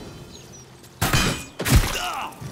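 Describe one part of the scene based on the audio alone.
An arrow whooshes through the air.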